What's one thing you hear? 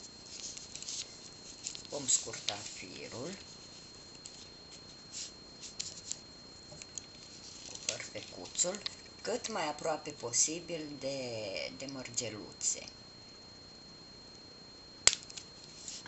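Small beads click softly against each other.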